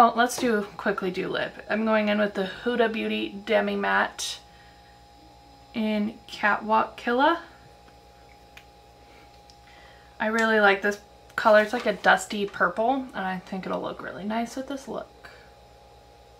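A woman speaks calmly and closely into a microphone.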